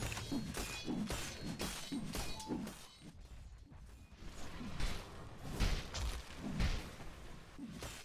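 Fantasy battle sound effects clash and crackle in quick bursts.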